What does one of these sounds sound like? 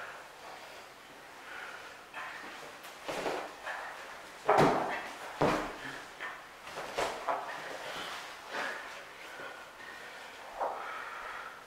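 Bodies thud and scuff against a padded mat.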